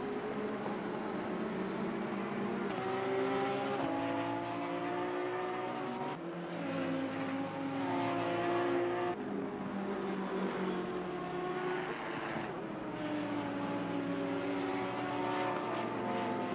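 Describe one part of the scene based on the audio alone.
An Audi R8 GT3 racing car's V10 engine howls at high revs.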